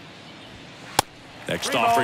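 A ball smacks into a catcher's mitt.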